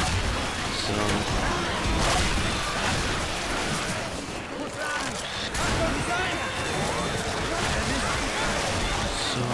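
A melee weapon slashes and thuds into flesh.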